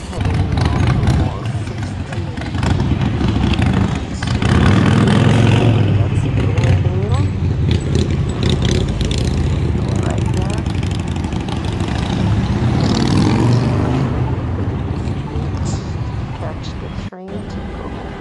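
Traffic rumbles along a busy street outdoors.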